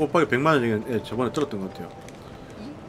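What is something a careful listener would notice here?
A young man speaks through a microphone.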